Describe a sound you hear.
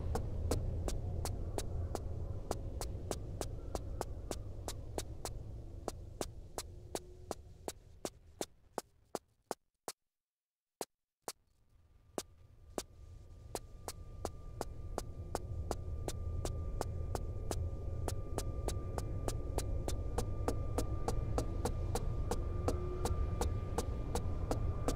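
Quick footsteps run steadily on a hard floor.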